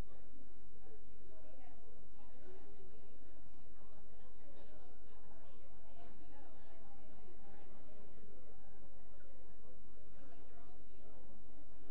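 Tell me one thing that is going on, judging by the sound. A crowd of men and women chat and mingle, their voices blending into a steady murmur.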